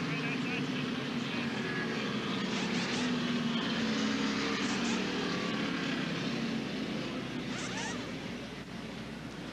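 Race car engines roar past on a track.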